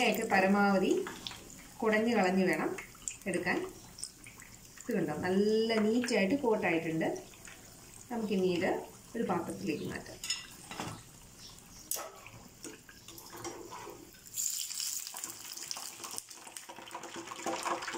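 Hot oil sizzles and bubbles in a pan.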